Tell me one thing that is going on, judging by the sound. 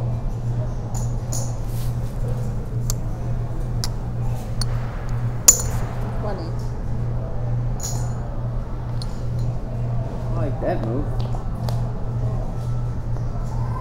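Poker chips click and clatter as they are stacked and pushed.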